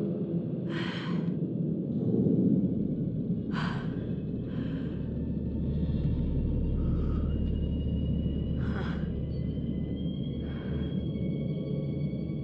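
Bare feet pad softly across a hard floor.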